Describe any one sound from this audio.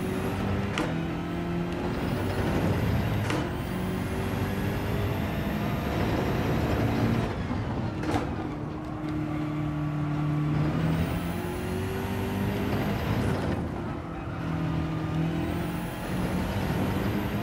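A racing car engine roars, revving up and down as gears shift.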